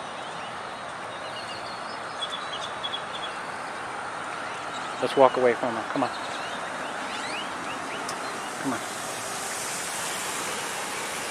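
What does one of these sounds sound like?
A car approaches along the road and drives past close by.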